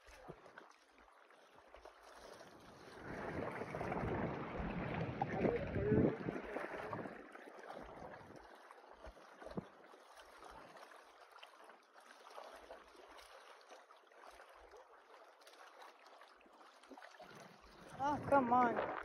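Small waves lap and splash against rocks close by.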